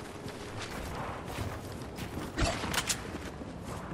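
Wooden pieces clatter into place as a ramp is built.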